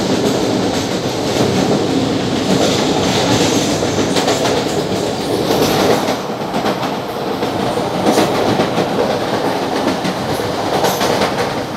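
A passing train rushes by close outside with a loud whoosh.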